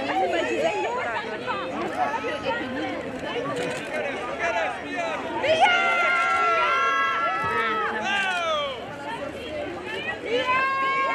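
A crowd of men and women shout and call out excitedly nearby, outdoors.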